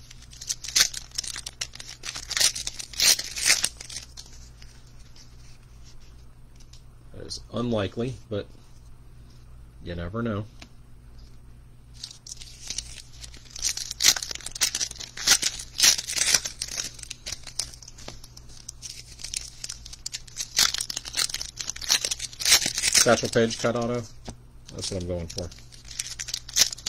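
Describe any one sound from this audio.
Cards rustle and flick as they are shuffled by hand.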